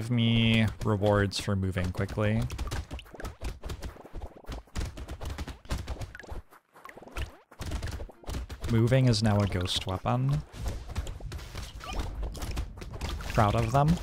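Rapid electronic zaps and hits crackle from a video game.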